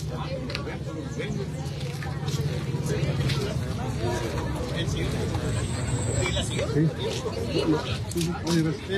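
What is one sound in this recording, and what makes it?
A crowd of men and women talk and murmur nearby, outdoors.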